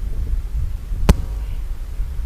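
A microphone thumps as a man handles its stand.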